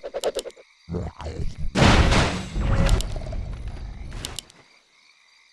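A game character fires a magic blast that booms and crackles.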